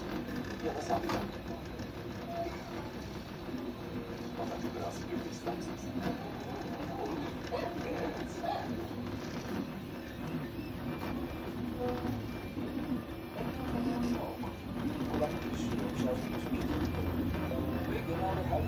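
A cooling fan hums steadily.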